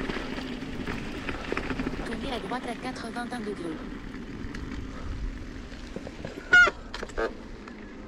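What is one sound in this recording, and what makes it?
Bicycle tyres hum smoothly on a paved road.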